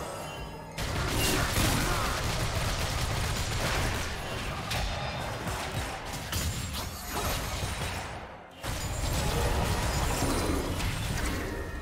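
Game spell effects crackle and burst in a fast fight.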